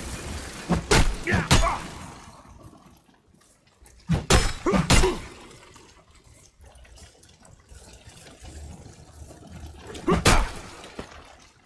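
Heavy blows strike and clang in a fight.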